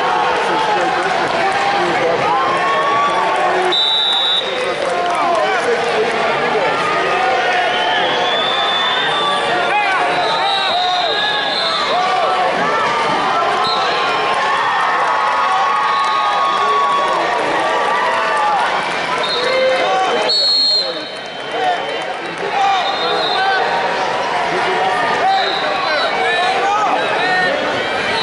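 A large crowd chatters and shouts in a big echoing arena.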